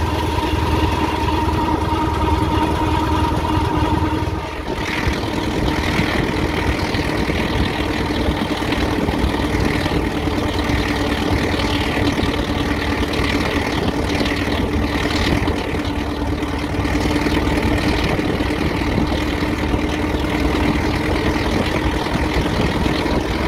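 A vehicle's engine chugs steadily and loudly up close.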